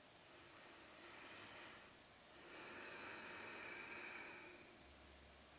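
A man breathes out slowly and deeply close by.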